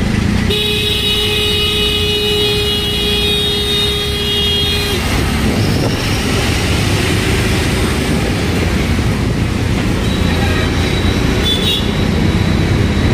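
An auto-rickshaw engine rattles and rumbles steadily from close by.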